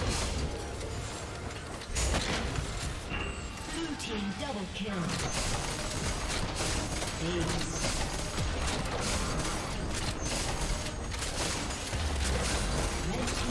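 Spell effects crackle and burst in a video game fight.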